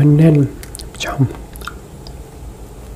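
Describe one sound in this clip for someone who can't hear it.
A young man bites into fruit with a crisp crack.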